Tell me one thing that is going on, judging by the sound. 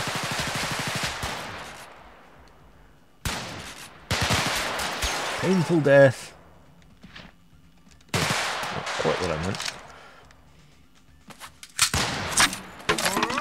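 A machine gun fires in loud, rapid bursts.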